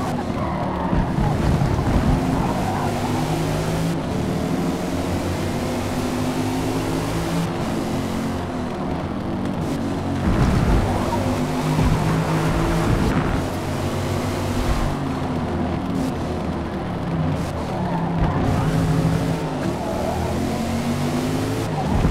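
Tyres screech through tight corners.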